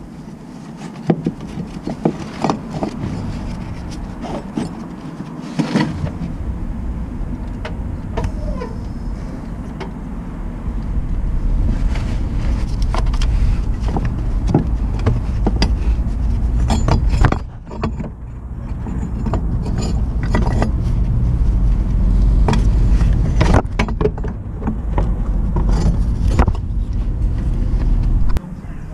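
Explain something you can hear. A gloved hand rubs and brushes against the microphone, close up.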